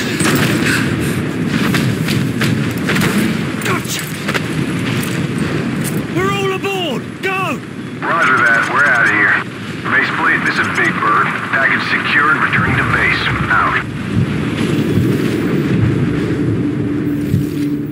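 Heavy rain pours down in a roaring storm wind.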